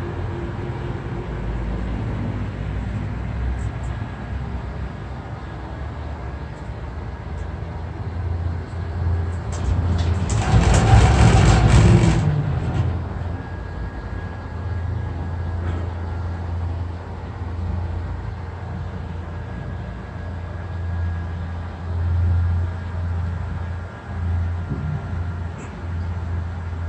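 A cable car cabin hums steadily as it glides along its cable.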